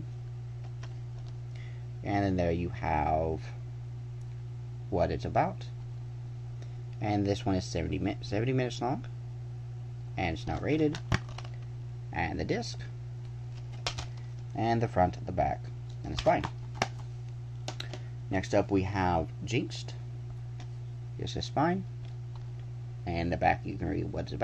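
A plastic disc case clicks and rattles as it is handled.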